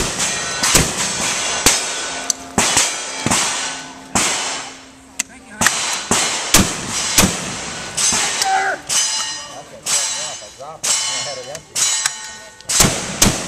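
A double-barrel shotgun fires outdoors, shot after shot.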